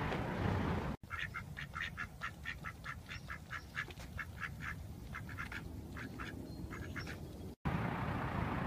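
Duck feet slap quickly and evenly on pavement.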